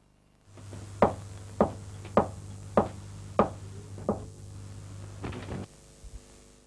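Knuckles knock slowly and firmly on a wooden door.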